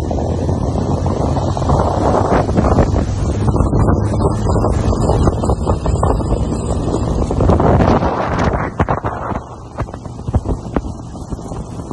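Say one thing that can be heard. The churning wake of a motorboat splashes and hisses.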